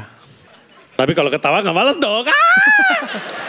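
A man exclaims loudly in surprise.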